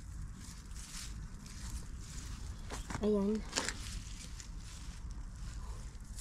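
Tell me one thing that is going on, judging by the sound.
Leafy plants rustle as a hand pushes through them.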